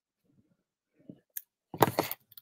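A hand presses and rubs paper against a table with a soft rustle.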